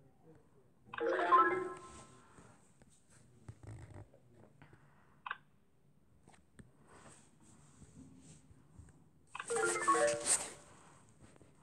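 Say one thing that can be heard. A bright electronic chime plays as blocks clear in a puzzle game.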